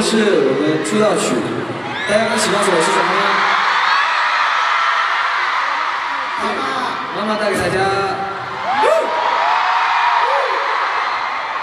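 A young man speaks into a microphone, heard over loudspeakers in a large echoing arena.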